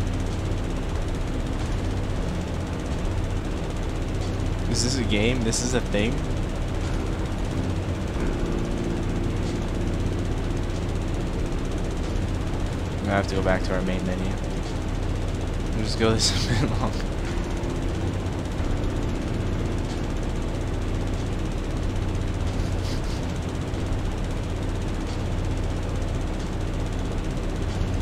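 A riding mower engine hums steadily.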